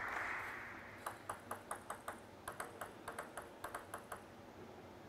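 A ball bounces on a table tennis table.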